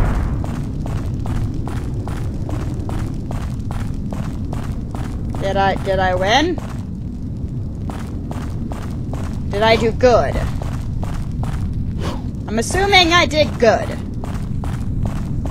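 Footsteps run quickly and steadily over a stone floor.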